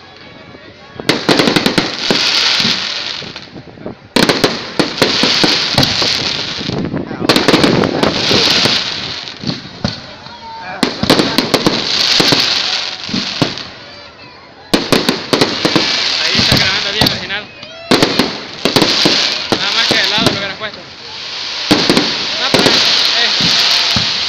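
Fireworks crackle and pop in loud bursts close by.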